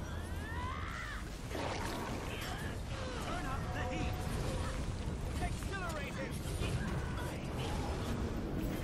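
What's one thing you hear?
Fire spell sound effects whoosh and crackle in a video game battle.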